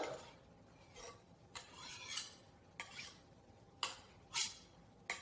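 A knife chops on a cutting board.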